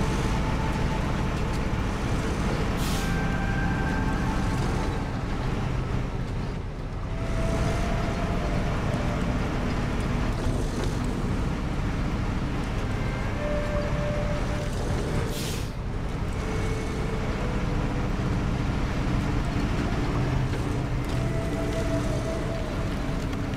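Tyres crunch over rocks and snow.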